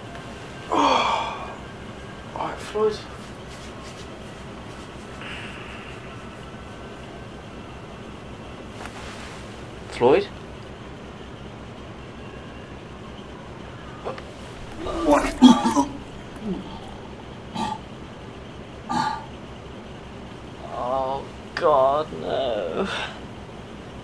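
A young person breathes heavily and sighs close by, in short bursts.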